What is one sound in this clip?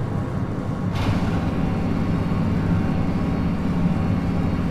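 A heavy metal door slides open with a whoosh.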